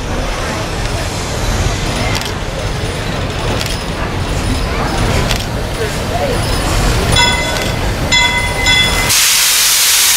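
A steam locomotive rumbles and chugs as it approaches.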